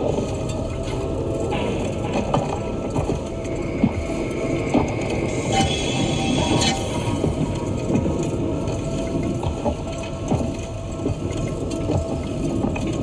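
Bubbles rise and gurgle from a diver's breathing gear underwater.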